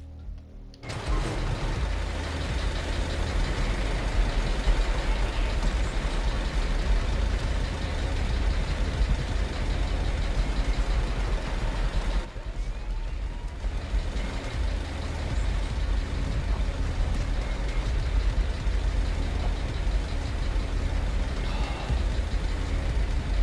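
A lift rumbles steadily as it moves along its cable.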